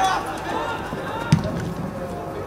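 A football is kicked hard with a dull thud.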